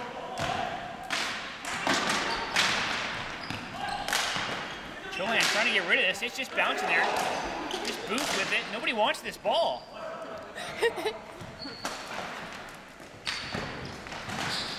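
Hockey sticks clack and slap against a ball in a large echoing hall.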